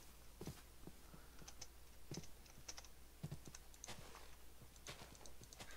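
Footsteps crunch softly on grass at a steady walking pace.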